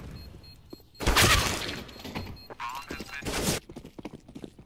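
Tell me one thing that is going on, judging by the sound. Rifle shots crack loudly in a burst.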